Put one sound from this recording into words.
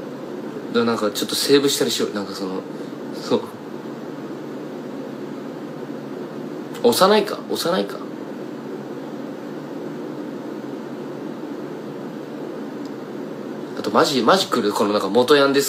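A young man speaks casually and close up, in short bursts with pauses.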